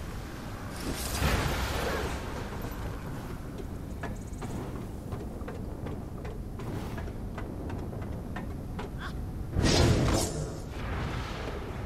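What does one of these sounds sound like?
Loud whooshing gusts rush past in bursts.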